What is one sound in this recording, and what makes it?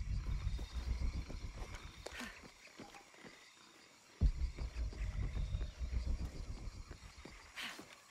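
Footsteps thud on dirt and leaves.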